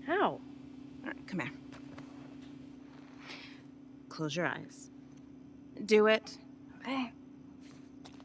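A teenage girl answers quietly up close.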